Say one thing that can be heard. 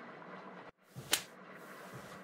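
A hand slaps a head once.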